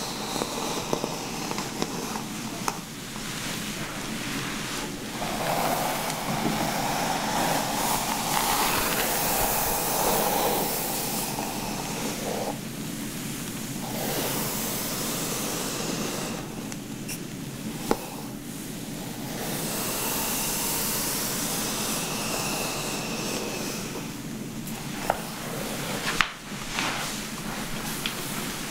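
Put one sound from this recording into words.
Fingers rustle through hair.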